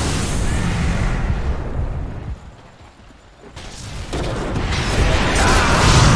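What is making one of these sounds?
Video game combat effects crackle and boom as spells are cast.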